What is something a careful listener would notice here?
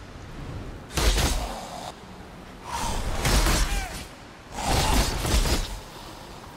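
Game spells burst and crackle with fire.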